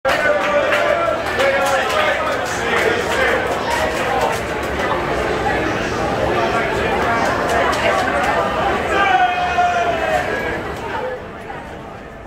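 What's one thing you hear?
A large crowd of men chatters and calls out loudly in an echoing tunnel.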